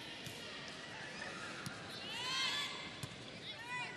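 A volleyball is struck hard in a large echoing hall.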